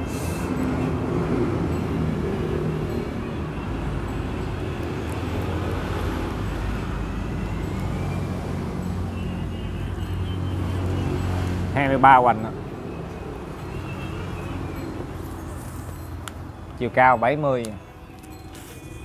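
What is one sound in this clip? A middle-aged man talks calmly close to a clip-on microphone.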